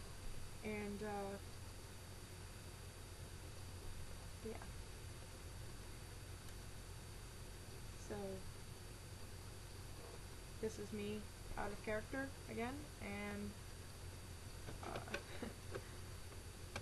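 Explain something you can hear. A young woman speaks quietly and haltingly, close by through a small microphone.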